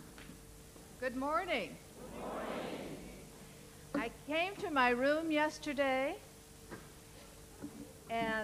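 A woman speaks with animation into a microphone in an echoing hall.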